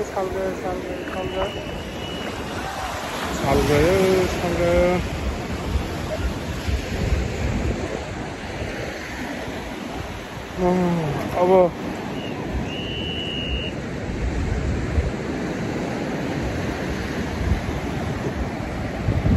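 Small waves wash and fizz onto the shore.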